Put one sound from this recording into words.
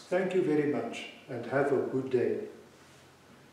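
An older man speaks calmly and close by.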